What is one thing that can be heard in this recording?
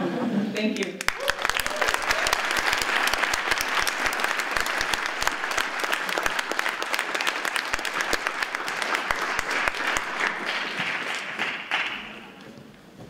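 Hands clap in applause.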